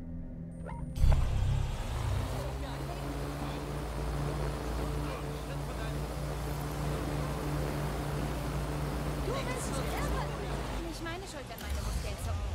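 A small drone hums steadily with whirring rotors.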